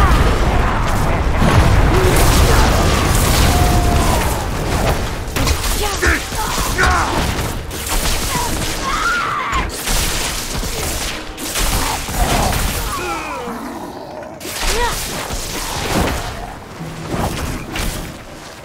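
Blows and magic strikes crackle and thud in quick bursts.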